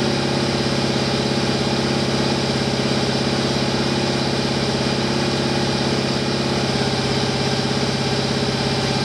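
A big engine idles with a loud, lumpy, rhythmic rumble in an echoing room.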